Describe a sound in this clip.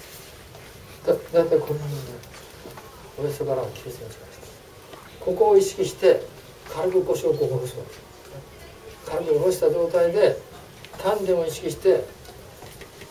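An older man speaks with animation through a small clip-on microphone, in short bursts.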